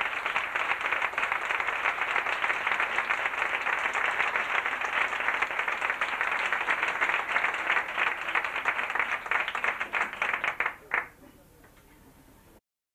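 A man sings out loudly on stage.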